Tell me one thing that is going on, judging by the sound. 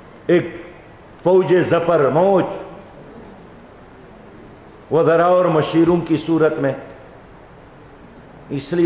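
An elderly man speaks with animation into a microphone, in short bursts with pauses.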